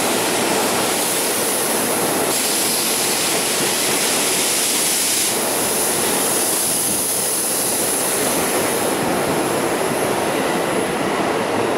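A train rushes past close by with a loud rumble.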